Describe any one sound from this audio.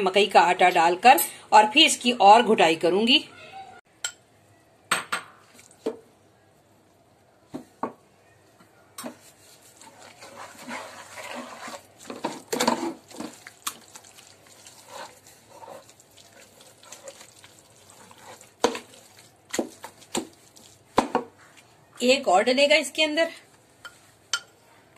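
A wooden spoon scrapes and knocks against a metal pot while stirring a thick mixture.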